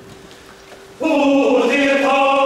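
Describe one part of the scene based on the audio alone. A mixed choir breaks into loud, full singing.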